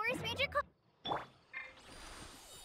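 A magic burst whooshes with a sharp crackle.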